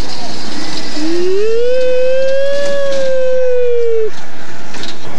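A young child lets out a long, loud squeal close by.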